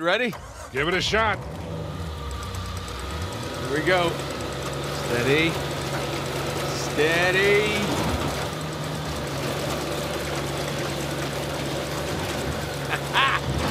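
A vehicle engine hums steadily and labours as it climbs.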